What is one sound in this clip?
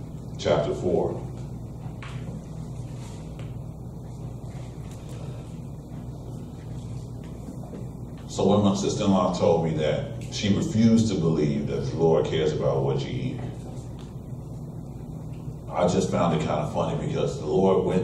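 A man speaks calmly with long pauses, in a room with a slight echo.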